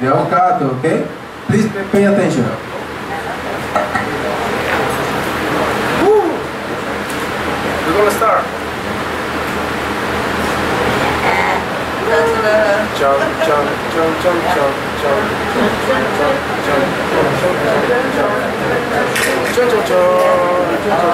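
A man speaks with animation, loud and close.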